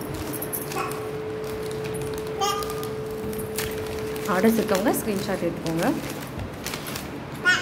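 Plastic packets rustle and crinkle as a hand sorts through them.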